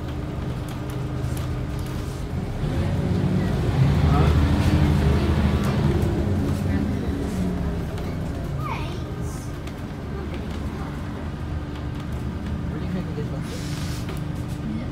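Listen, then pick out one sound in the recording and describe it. A bus engine rumbles steadily from inside the moving bus, swelling louder as it speeds up.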